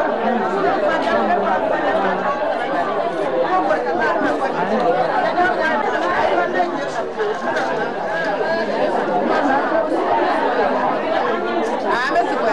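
Many women talk over one another in a crowd.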